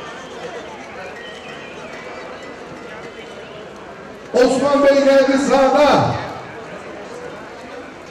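A crowd of men talks and shouts nearby outdoors.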